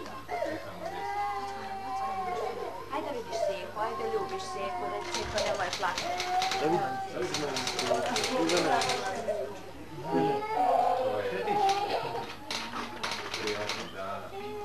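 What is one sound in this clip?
A group of children sing together nearby.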